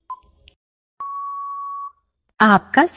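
A beep sounds, long and steady.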